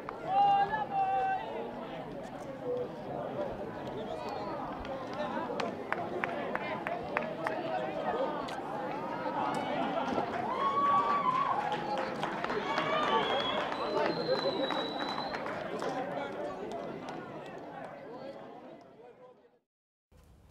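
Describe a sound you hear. A crowd of young men chatter and call out outdoors.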